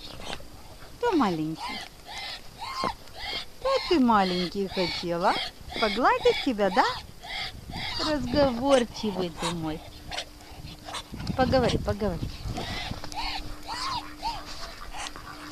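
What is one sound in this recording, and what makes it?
A duck makes soft, rising and falling calls close by.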